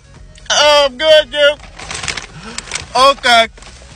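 A paper bag rustles.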